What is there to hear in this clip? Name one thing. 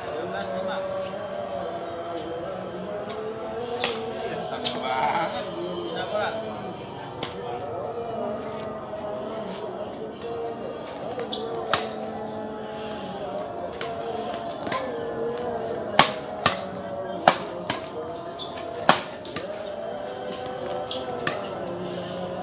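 Men call out to each other outdoors.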